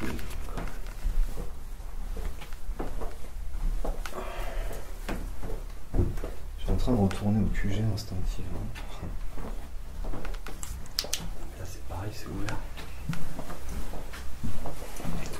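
Footsteps walk slowly across a hard floor.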